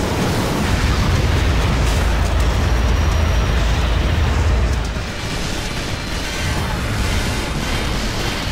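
Heavy explosions rumble and boom.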